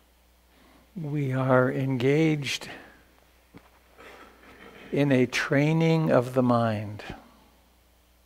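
An elderly man chants slowly in a deep voice, close to a microphone.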